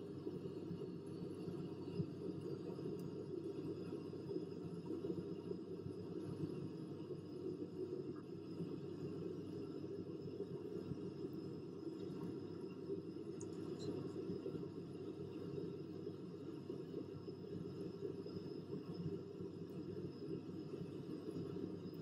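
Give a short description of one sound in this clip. Jet engines drone steadily with a low rumble.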